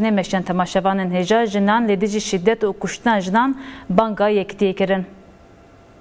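A young woman reads out calmly and clearly into a microphone.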